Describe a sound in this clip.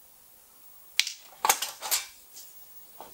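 A thin metal panel clatters and rattles as it is lifted.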